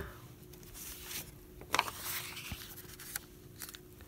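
A sheet of paper rustles as it is laid down.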